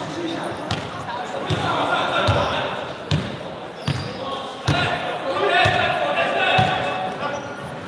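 Young men shout and call out to each other in an echoing hall.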